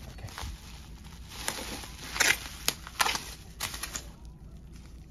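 Plastic bubble wrap crinkles and rustles as hands handle it.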